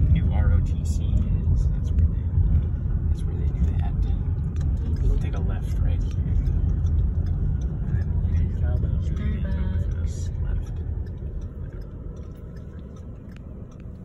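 A car engine hums and road noise rumbles steadily from inside a moving car.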